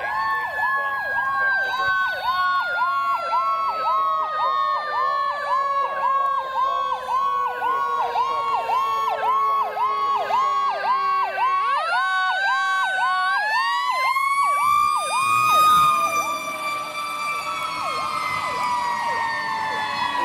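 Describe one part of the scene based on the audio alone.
A siren wails, falling and then rising in pitch.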